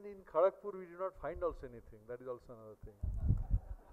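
A man speaks with animation into a microphone in an echoing hall.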